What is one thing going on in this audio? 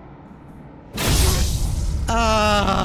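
A sword slashes with a sharp, heavy blow.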